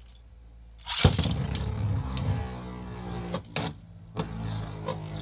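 Spinning tops clack as they collide.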